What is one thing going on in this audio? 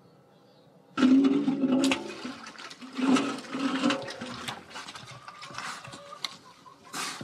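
A pig eats noisily from a trough.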